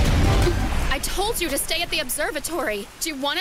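A young woman speaks close by in a distressed, pleading voice.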